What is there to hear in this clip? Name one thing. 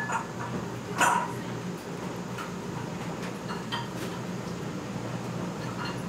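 A spoon and chopsticks clink against a bowl.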